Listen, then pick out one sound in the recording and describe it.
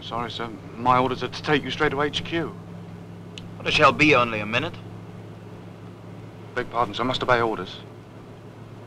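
A man speaks calmly at close range.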